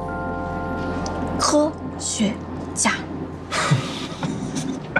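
A young man speaks playfully close by.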